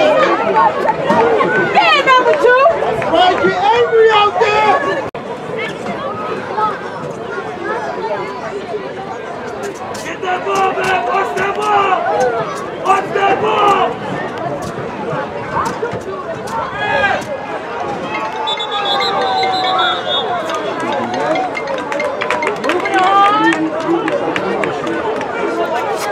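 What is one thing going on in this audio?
Children and adults shout and call out across an open field.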